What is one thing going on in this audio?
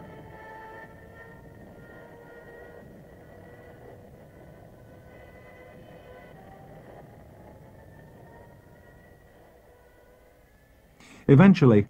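A diving plane's engine whines with a long, shifting pitch.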